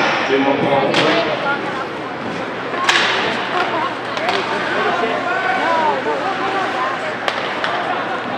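Ice hockey sticks crack against a puck.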